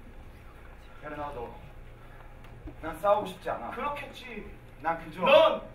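A young man speaks with emotion, heard through a microphone.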